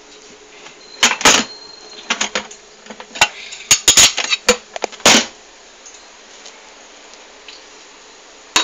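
Plastic dishes knock and clatter together.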